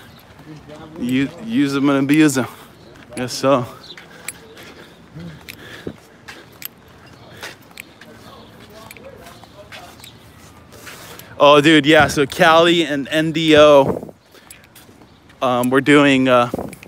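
A man talks casually close by, outdoors.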